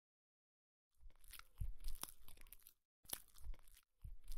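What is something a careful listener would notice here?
A man chews crunchy toast close up.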